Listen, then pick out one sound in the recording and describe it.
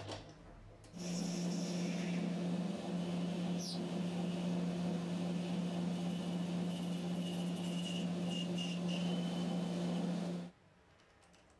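A cutting tool scrapes against spinning metal.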